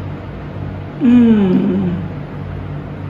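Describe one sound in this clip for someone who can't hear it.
A woman moans with pleasure while tasting food.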